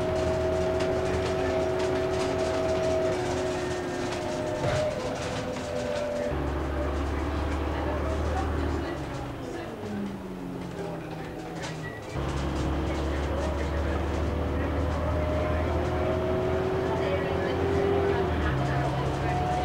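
A bus engine drones and whines, rising and falling in pitch as it changes gear.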